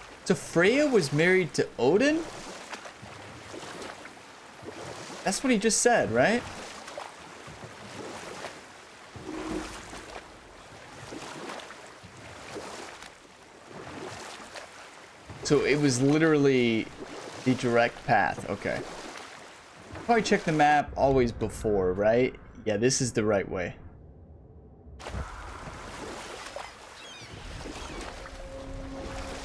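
Oars splash through water as a boat is rowed.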